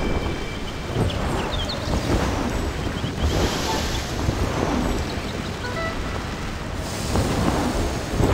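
Sparkling magical chimes twinkle.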